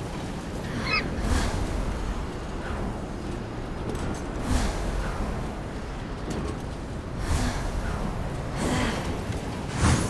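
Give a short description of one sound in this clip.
Wings whoosh in bursts as a winged figure swoops through the air.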